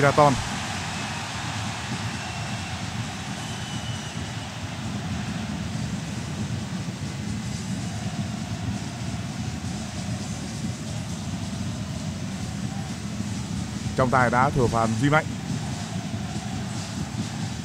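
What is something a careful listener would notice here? A large crowd roars steadily in a stadium.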